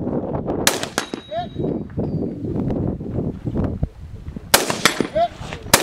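A gun fires sharp, loud shots outdoors, one after another.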